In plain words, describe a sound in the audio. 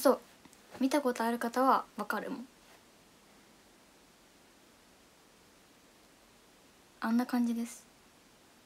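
A young woman speaks softly and close to a microphone, in short bursts with pauses.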